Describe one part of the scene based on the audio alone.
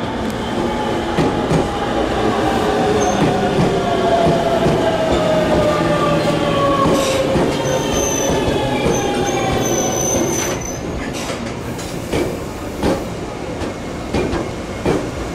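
An electric train rolls past close by with a steady rumble.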